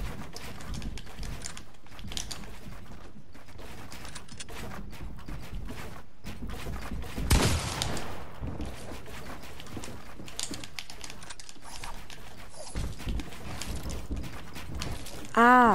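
Wooden building pieces clatter and thud into place in quick succession.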